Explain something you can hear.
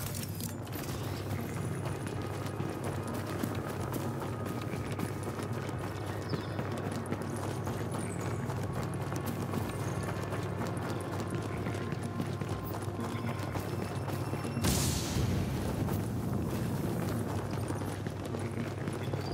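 Footsteps run over gravel and rail tracks.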